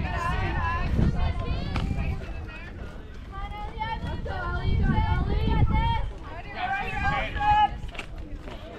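Adult spectators talk with animation close by, outdoors.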